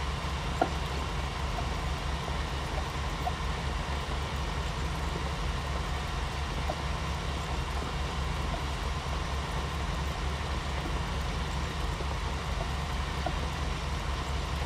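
A tractor engine hums steadily with a low drone.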